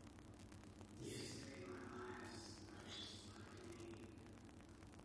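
A woman speaks calmly in a room with some echo.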